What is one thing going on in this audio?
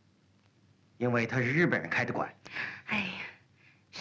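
A young man speaks sharply and close by.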